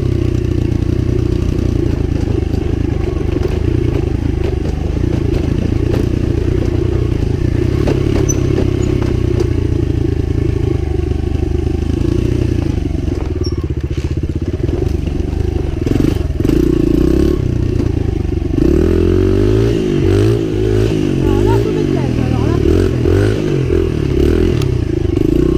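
A dirt bike engine revs and roars up close, rising and falling in pitch.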